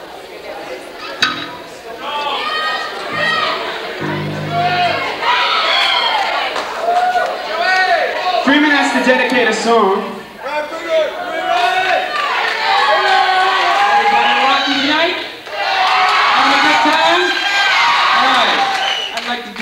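A band plays loudly on stage in a large echoing hall.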